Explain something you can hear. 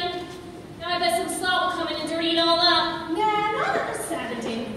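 Two women sing in a large echoing hall.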